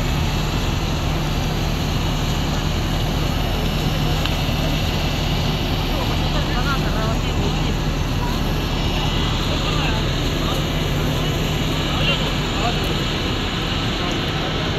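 A crowd of people talks in a low murmur outdoors.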